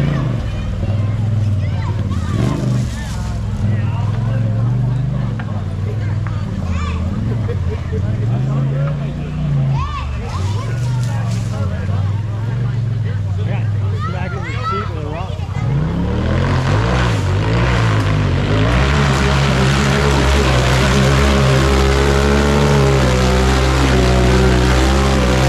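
An off-road buggy engine revs hard and roars as it climbs.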